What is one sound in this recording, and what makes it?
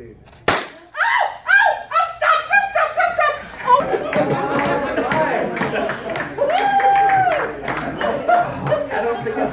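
A woman screams loudly and cries out in pain.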